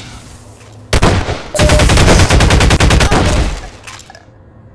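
An energy weapon fires with a crackling hum.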